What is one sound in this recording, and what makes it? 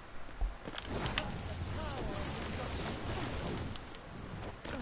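A glowing energy orb hums and whooshes loudly.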